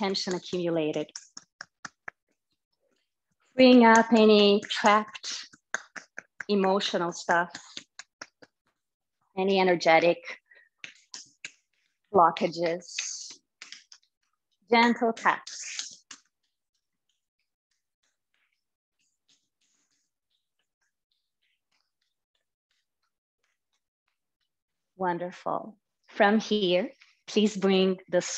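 A woman speaks calmly and slowly into a close microphone, with pauses.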